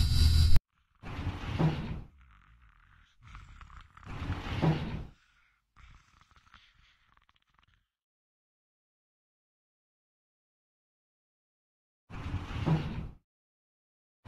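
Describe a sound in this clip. Elevator doors slide open and shut with a heavy rumble.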